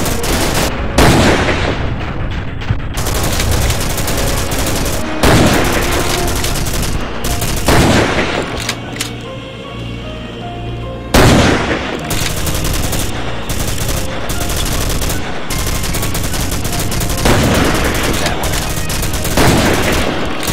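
A rifle fires loud, sharp shots that echo away.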